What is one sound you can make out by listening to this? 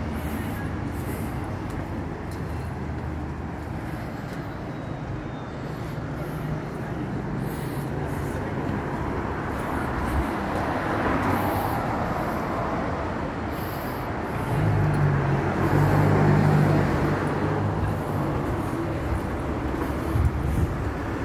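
Traffic hums steadily along a street outdoors.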